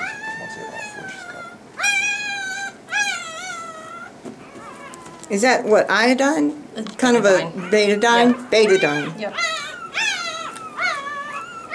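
A puppy whines and squeals loudly, close by.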